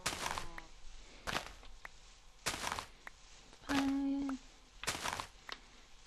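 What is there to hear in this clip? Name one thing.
A pickaxe chips and crunches through blocks of dirt.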